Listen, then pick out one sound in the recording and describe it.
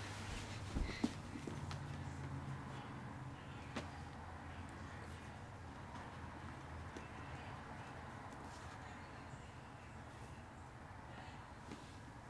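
Shoelaces rustle softly as they are tied.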